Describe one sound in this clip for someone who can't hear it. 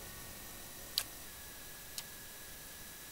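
A soft click sounds, then another.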